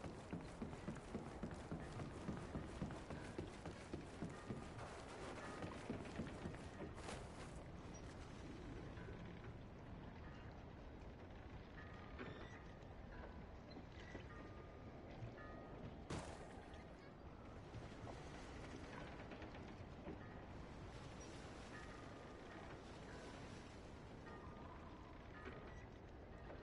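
Waves wash steadily against a shore in wind.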